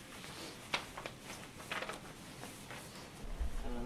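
A plastic gown rustles as it is unfolded.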